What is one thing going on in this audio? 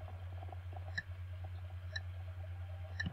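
A short high beep sounds once each second, counting down.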